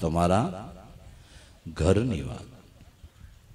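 An older man sings short phrases into a microphone.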